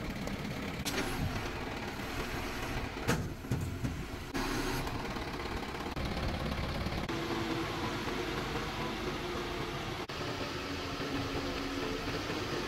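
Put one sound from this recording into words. A truck engine rumbles steadily close by.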